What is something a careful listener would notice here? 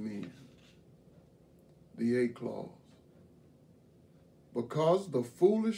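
An elderly man reads aloud slowly and calmly, close by.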